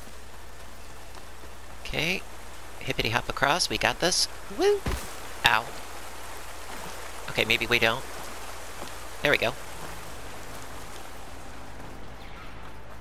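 Water rushes down a small waterfall.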